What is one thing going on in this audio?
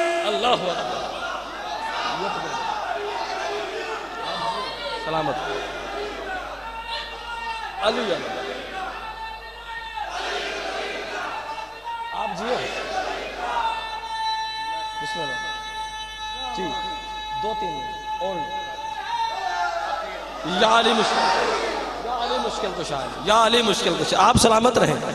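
A young man sings loudly through a microphone and loudspeakers.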